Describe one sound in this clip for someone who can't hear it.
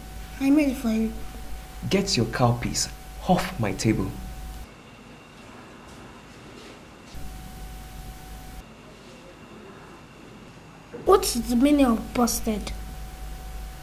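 A young boy speaks calmly nearby.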